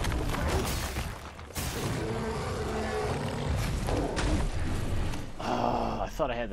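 A large beast growls loudly.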